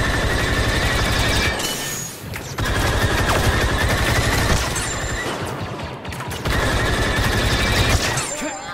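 Rapid blaster shots crackle in long bursts.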